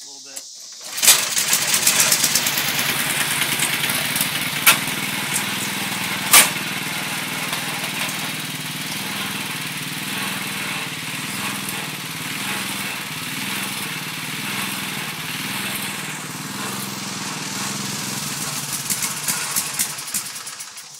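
A lawn mower engine starts with a roar and runs steadily.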